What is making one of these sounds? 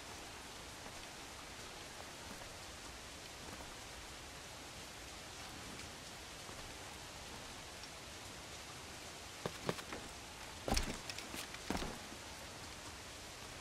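Wind blows steadily over the open sea.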